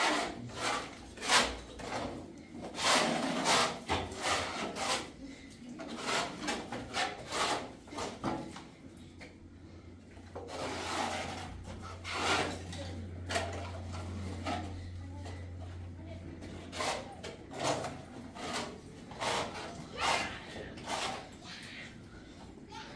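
A trowel clinks against a bucket.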